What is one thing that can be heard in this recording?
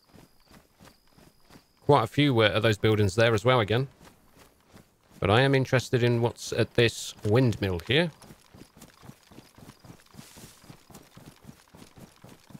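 Footsteps swish steadily through tall grass.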